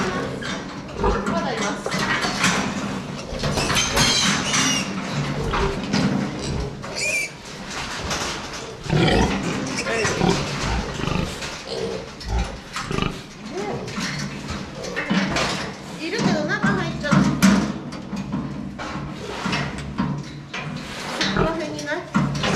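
Metal pen gates rattle and clank.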